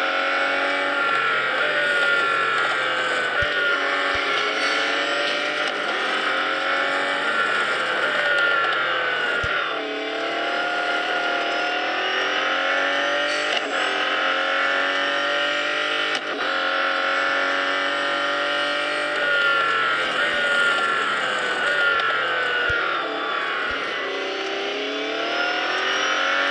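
A racing car engine roars at high speed, its pitch rising and dropping with gear changes.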